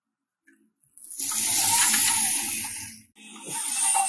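Toy truck wheels roll across artificial grass.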